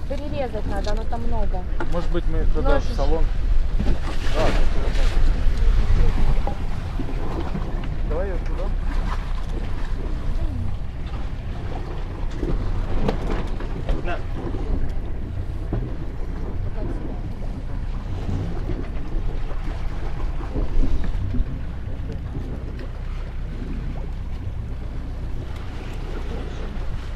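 Wind buffets the microphone outdoors at sea.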